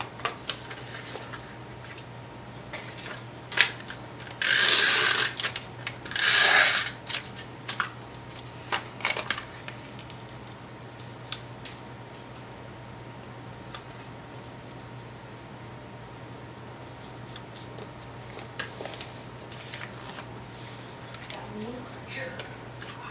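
Paper rustles and crinkles up close.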